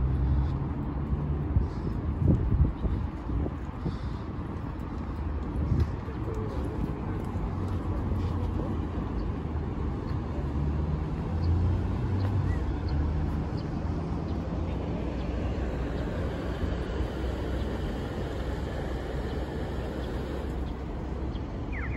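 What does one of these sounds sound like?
Traffic hums steadily from a city street nearby.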